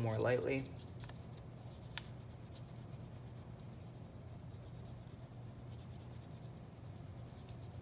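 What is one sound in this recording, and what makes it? A finger rubs softly across paper.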